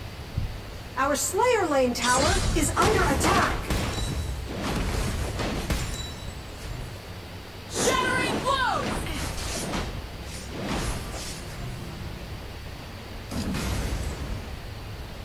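Video game combat sounds clash and whoosh.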